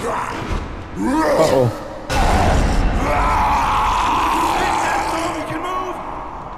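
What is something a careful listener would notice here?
A monster growls and roars loudly.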